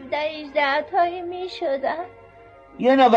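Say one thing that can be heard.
An elderly woman speaks in a plaintive voice.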